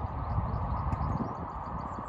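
A small car drives past outdoors.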